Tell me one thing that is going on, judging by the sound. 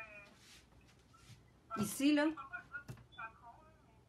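Paper rustles as a hand moves it.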